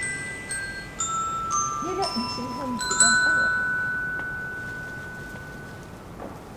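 A wind band plays the final bright chords of a piece, which ring out and fade in a hall.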